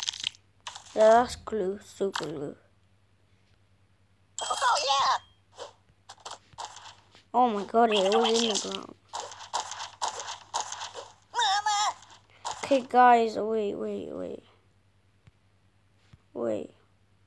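A young boy talks close to the microphone.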